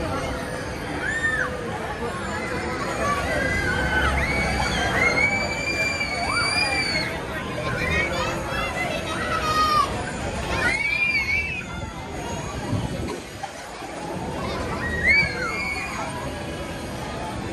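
Children and teenagers scream on a fast swinging fairground ride.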